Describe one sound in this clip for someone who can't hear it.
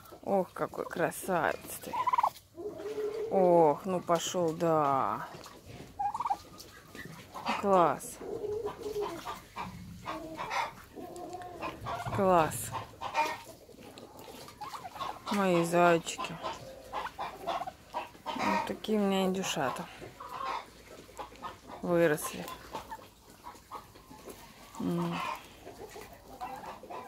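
Turkeys gobble loudly in quick, rattling bursts.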